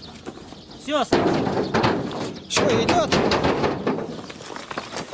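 A man speaks nearby outdoors.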